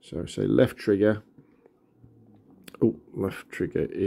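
Buttons on a handheld game console click softly.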